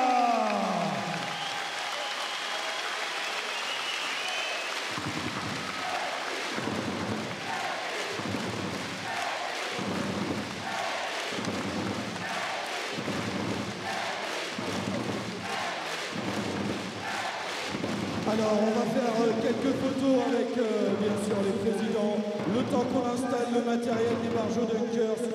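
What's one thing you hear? A large crowd cheers and applauds in an echoing arena.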